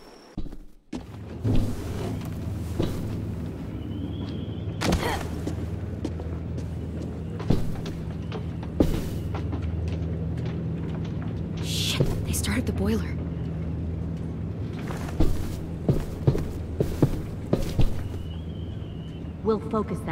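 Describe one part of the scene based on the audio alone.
A ship's boiler engine hums with a low, steady rumble.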